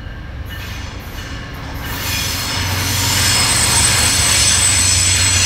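A diesel locomotive rumbles as it approaches.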